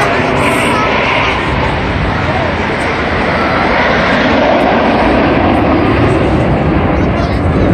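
Jet planes roar loudly overhead.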